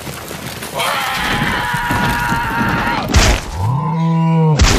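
A cartoon larva screams in shock.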